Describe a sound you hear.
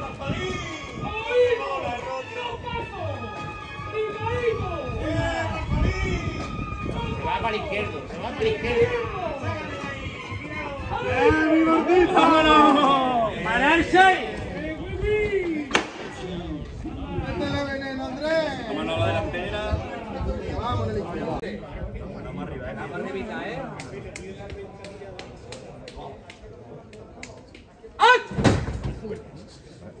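A crowd of men talk and call out loudly nearby, outdoors.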